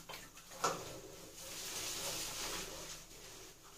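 Clothing rustles as a woman moves and stretches her arms.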